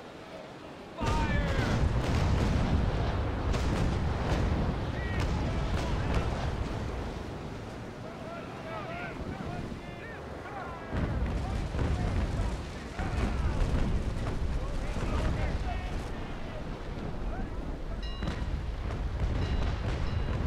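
Cannons fire with heavy, rumbling booms.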